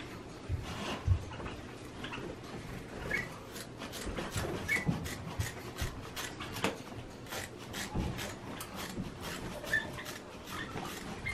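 Scissors snip and cut through a stiff paper bag.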